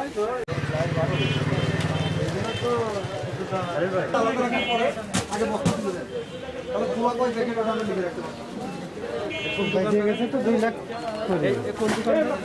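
Several men talk loudly nearby in a busy outdoor crowd.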